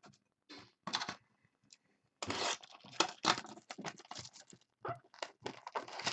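Cardboard boxes are handled and shuffled.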